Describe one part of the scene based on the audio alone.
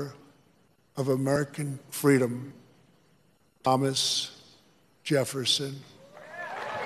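An elderly man speaks slowly and firmly through a microphone, with pauses, his voice echoing.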